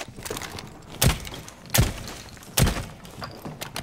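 Gunshots ring out sharply, a few seconds apart.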